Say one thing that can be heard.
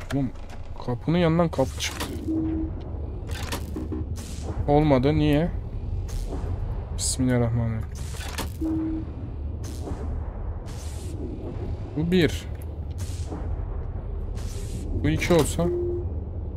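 A man speaks into a close microphone in short, animated bursts.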